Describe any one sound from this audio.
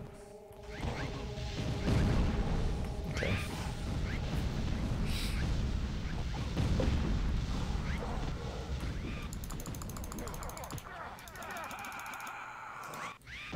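Game creatures screech and grunt as they fight.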